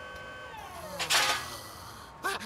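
Metal pipes clatter to the ground.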